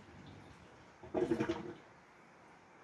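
A washing machine beeps loudly.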